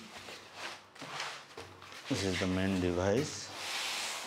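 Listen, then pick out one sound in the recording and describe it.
Foam packing squeaks and rubs as it is pulled apart.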